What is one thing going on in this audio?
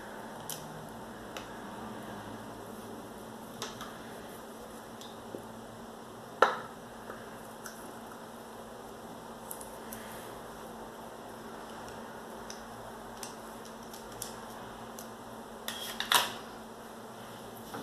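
A small plastic cap clicks open and shut.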